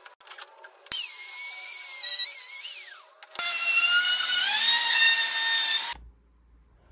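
A router whines loudly as it cuts wood.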